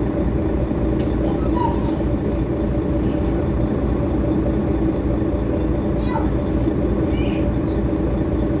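A bus engine idles close by with a steady low rumble.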